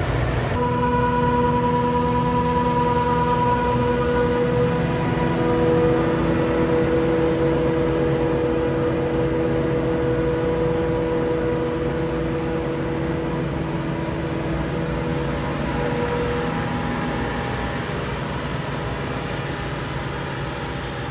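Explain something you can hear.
A forage harvester's engine drones loudly and steadily close by.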